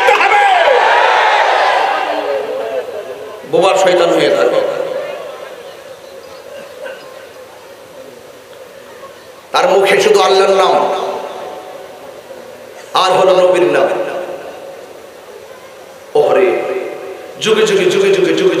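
A man preaches loudly and with fervour into a microphone, in bursts with echoing pauses.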